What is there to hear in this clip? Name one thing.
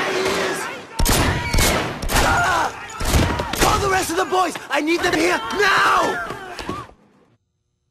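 A man shouts in alarm.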